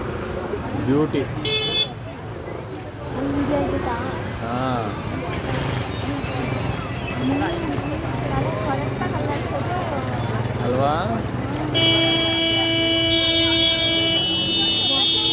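A crowd of onlookers chatters and calls out outdoors.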